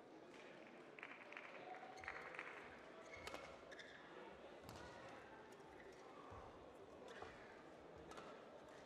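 Sports shoes squeak on a hard court floor.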